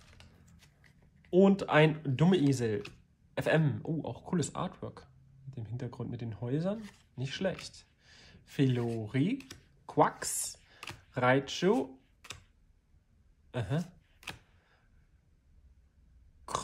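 Trading cards slide and shuffle against one another.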